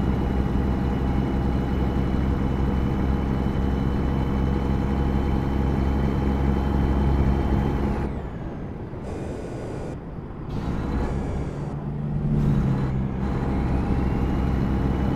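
A truck engine drones steadily at low speed, dipping briefly before coming back.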